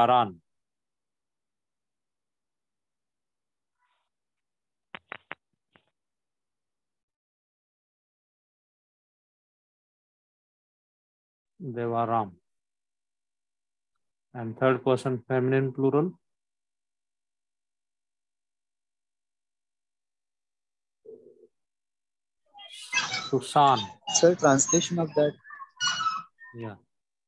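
A man speaks calmly over an online call, in short phrases with long pauses.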